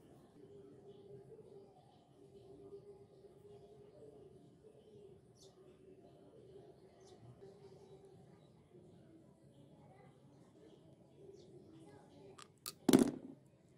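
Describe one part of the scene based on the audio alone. Metal parts clink as they are screwed together.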